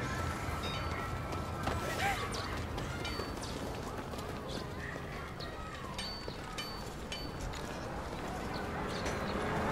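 Footsteps walk on pavement.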